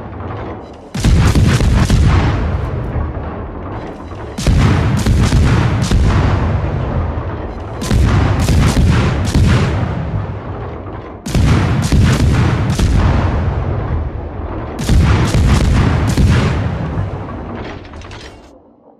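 Heavy naval guns fire in loud booming salvos that rumble and fade.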